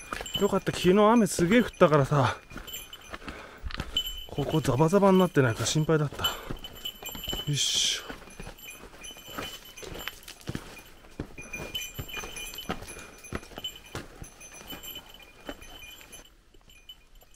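Boots crunch and scrape on loose rocks.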